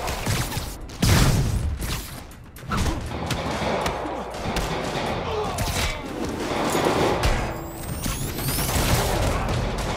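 Web lines shoot out with sharp zips.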